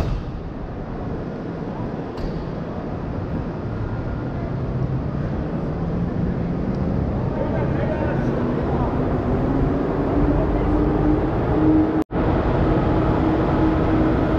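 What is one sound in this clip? A train's engine hums steadily nearby.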